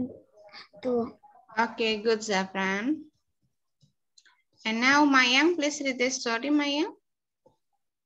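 A woman speaks clearly through an online call, in short phrases with pauses.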